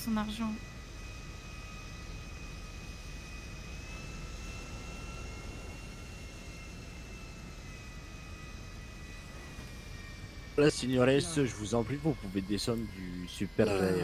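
A jet engine whines steadily at idle.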